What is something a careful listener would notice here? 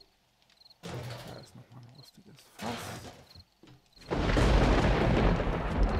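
A fire crackles and roars in a metal barrel.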